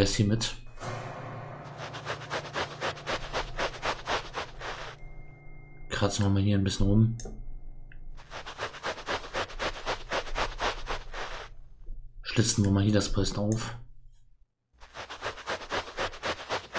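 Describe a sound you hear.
A metal point scratches rhythmically against a wall.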